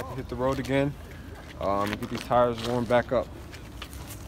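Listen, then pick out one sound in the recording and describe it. A young man speaks casually close by.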